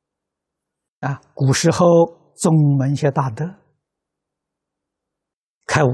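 An elderly man speaks calmly and slowly into a microphone, close by.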